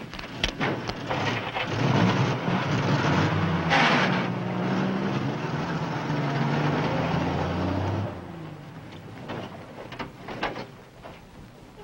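A truck engine starts and revs loudly, then drives away and fades.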